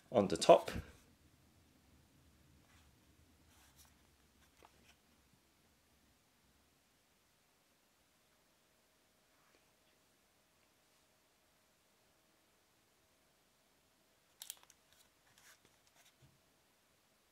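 Light plastic clicks and taps come from a small keyboard being handled.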